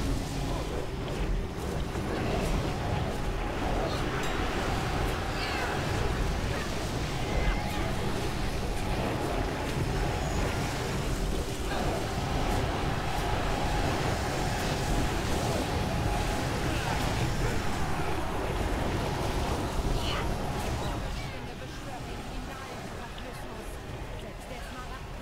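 Magic blasts crackle and rumble in a busy battle.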